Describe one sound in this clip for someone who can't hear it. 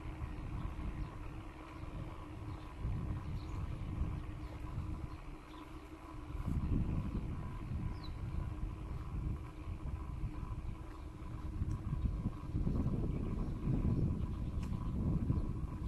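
Wind buffets the microphone in low gusty rumbles outdoors.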